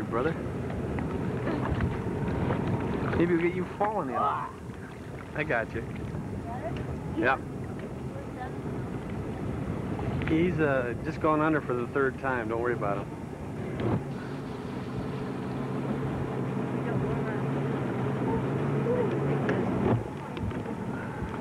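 Water splashes against the side of a boat.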